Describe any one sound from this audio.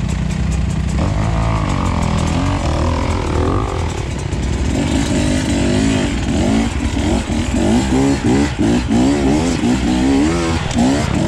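A dirt bike engine revs up and down repeatedly as it climbs.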